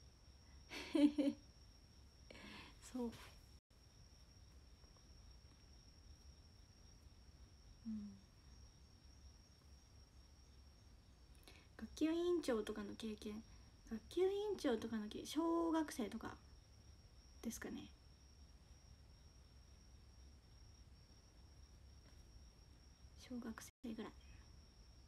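A young woman speaks softly and closely, in short bursts with pauses.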